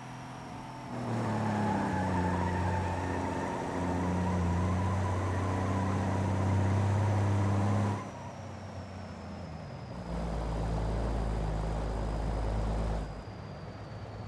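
A truck's diesel engine rumbles and revs as it accelerates through gear changes.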